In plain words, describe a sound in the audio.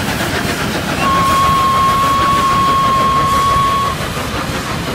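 A steam train whistle blows one long steady note.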